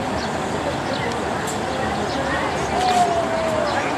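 Two women talk quietly with each other outdoors.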